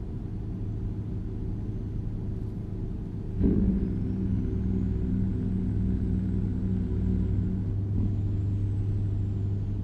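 A truck engine rumbles steadily and grows louder as it speeds up.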